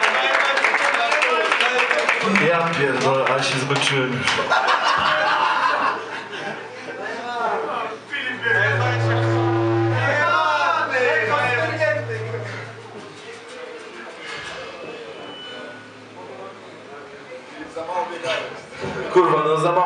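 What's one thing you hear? A crowd of men and women talks and shouts loudly close by.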